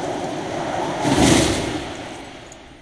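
A parachute snaps open with a loud whoosh.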